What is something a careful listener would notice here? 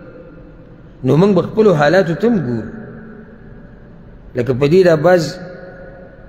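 A man speaks calmly into a microphone, with a slight echo.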